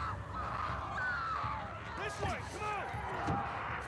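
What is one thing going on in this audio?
A man calls out urgently, close by.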